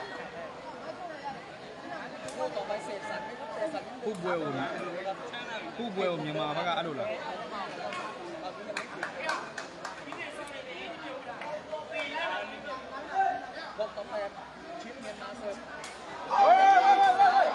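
A large crowd chatters and calls out in an echoing hall.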